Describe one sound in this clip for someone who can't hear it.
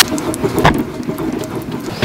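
A wooden spoon stirs and scrapes in a pan.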